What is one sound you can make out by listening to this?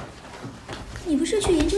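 A young woman asks a question calmly nearby.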